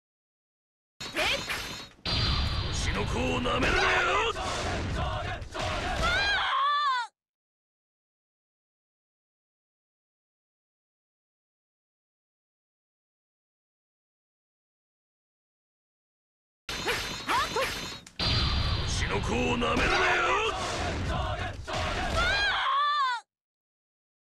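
Weapons clash and blows land in a fast fight.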